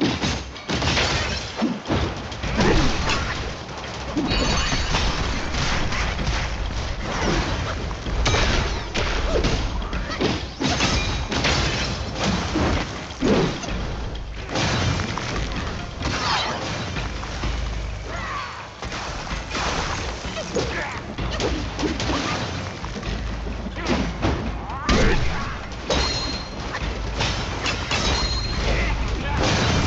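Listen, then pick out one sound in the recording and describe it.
Weapons clash and strike in a fast, noisy fight.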